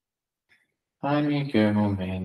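A man chants in a low, steady voice close to a microphone.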